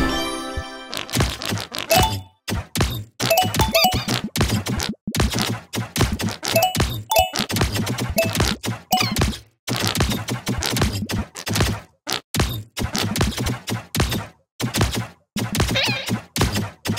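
Fast, pulsing electronic game music plays.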